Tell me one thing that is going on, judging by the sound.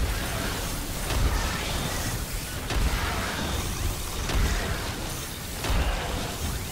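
Explosions and laser blasts boom and crackle without a break.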